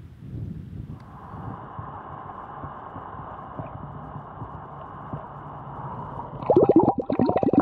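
Water burbles and rushes, heard from underwater.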